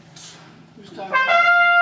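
A brass ensemble begins to play loudly in a room.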